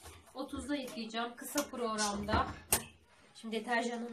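A washing machine door clicks shut.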